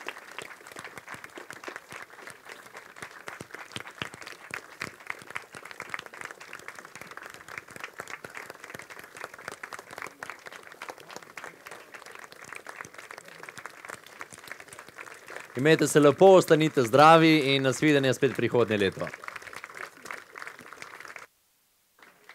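A large crowd murmurs and claps outdoors.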